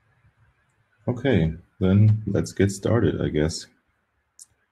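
A young man speaks calmly, close to the microphone, as if on an online call.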